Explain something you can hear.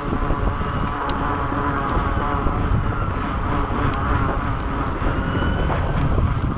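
Tyres hum steadily on smooth pavement.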